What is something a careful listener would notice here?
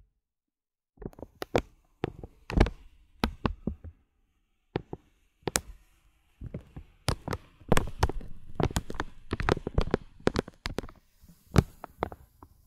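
A brush taps and clicks on plastic beads up close.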